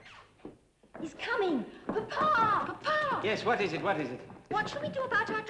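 A woman shouts loudly and angrily.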